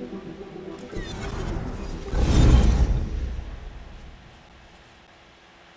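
A loud rushing whoosh sweeps past and fades away.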